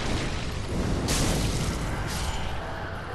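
A burst of flame roars up.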